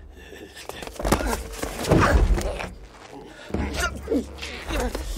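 A young man gasps and cries out in fear.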